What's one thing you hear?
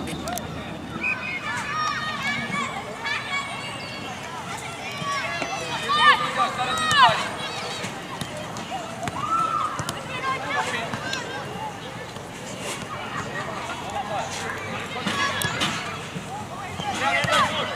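Football players shout to each other across an open pitch outdoors.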